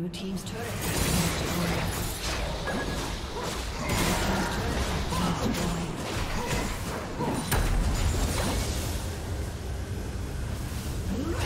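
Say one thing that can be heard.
Spell effects crackle and whoosh in a video game battle.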